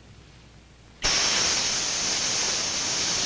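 Gas hisses loudly and steadily from a cylinder.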